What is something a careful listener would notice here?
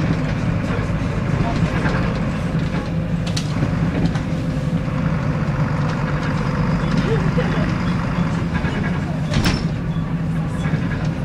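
The diesel engine of a single-decker bus drones low, heard from inside the cabin.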